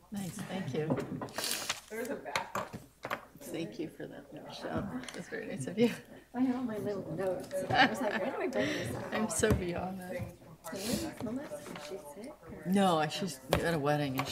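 Women laugh together.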